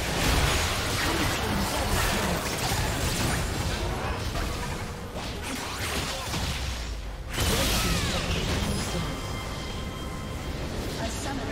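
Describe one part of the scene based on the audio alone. Game spell effects crackle and burst in a busy fight.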